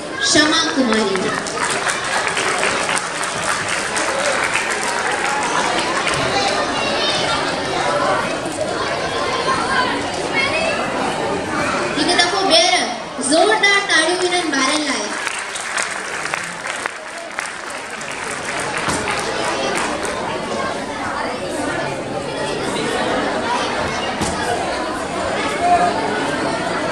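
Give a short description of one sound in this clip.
An audience murmurs and chatters throughout.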